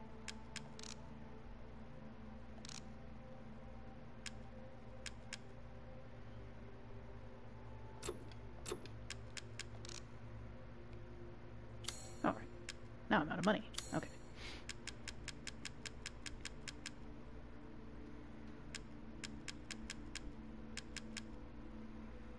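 Soft interface clicks tick quickly as a menu selection moves from item to item.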